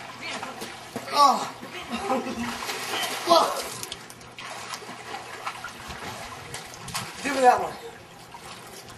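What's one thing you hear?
A boy shouts and calls out excitedly outdoors.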